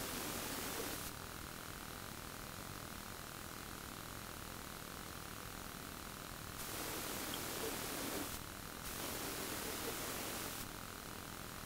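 A woman breathes out slowly and deeply.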